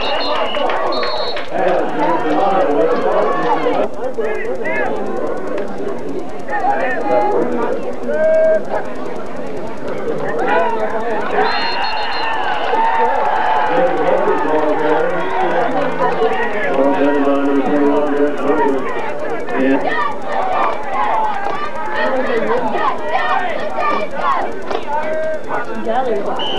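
Young men shout on an open field.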